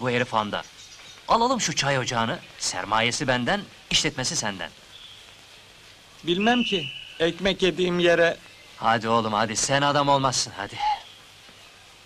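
A middle-aged man speaks close by with animation.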